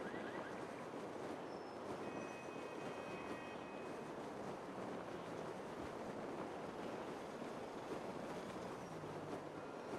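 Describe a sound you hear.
Wind rushes steadily past a parachute in flight.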